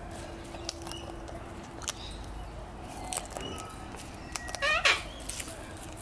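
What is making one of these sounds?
A sulphur-crested cockatoo cracks seeds with its beak.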